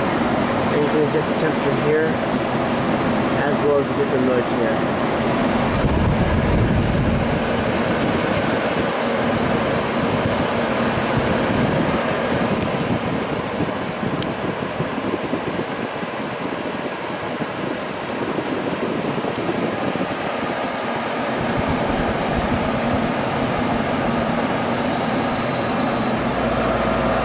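An air conditioner's control panel beeps as buttons are pressed.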